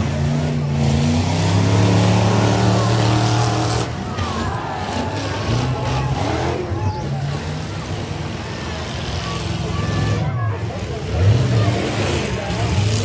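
Metal crunches as cars smash into each other.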